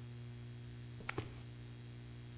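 A heavy metal drawer slides and clangs.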